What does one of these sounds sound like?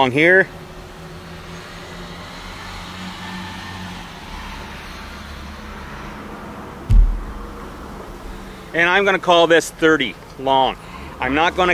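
A middle-aged man talks calmly and clearly, close by.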